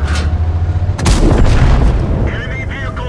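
A tank cannon fires with a loud boom that rolls away.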